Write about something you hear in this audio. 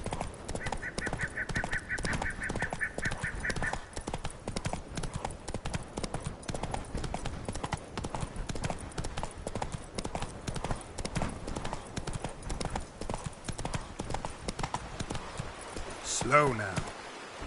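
Horse hooves gallop quickly over soft ground.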